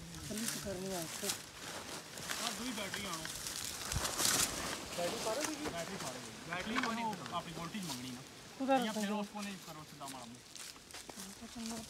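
A man talks nearby in a calm voice.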